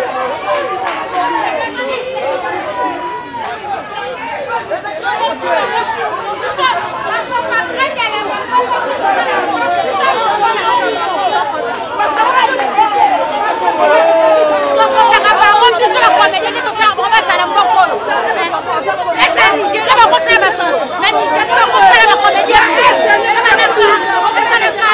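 A crowd of people talks and shouts outdoors.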